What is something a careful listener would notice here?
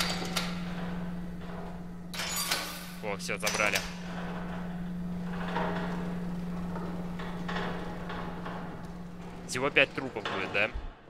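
A gurney rolls along with a low, steady rumble.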